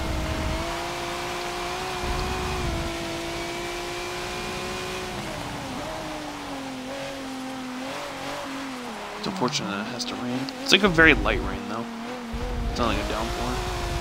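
A racing car engine drones steadily, then drops in pitch as the car slows.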